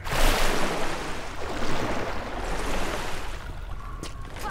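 Water sloshes softly around a swimmer.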